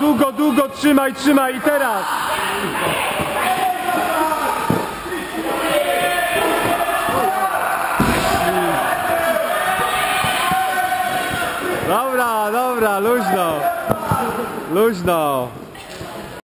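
Children talk and shout loudly in a large echoing hall.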